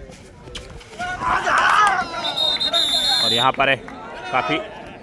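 A crowd cheers loudly outdoors.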